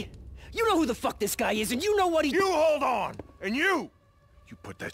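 A man shouts angrily close by.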